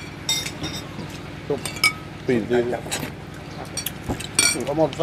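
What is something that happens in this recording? Dishes and spoons clink on a table.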